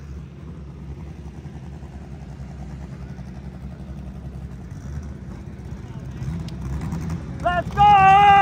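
A race car engine rumbles and idles nearby.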